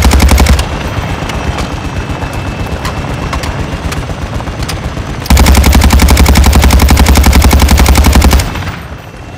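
A rifle fires rapid bursts, loud and close.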